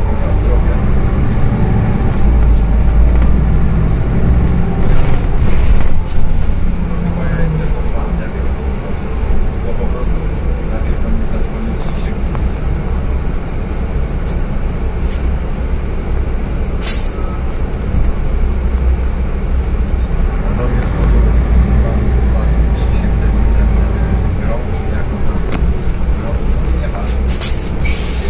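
A bus rattles and creaks as it drives along.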